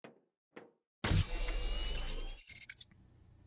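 An electronic machine whirs up with a rising chime.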